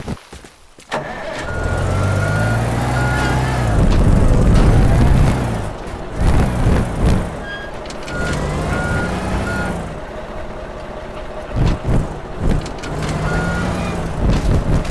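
A heavy mobile crane truck's engine rumbles as it drives.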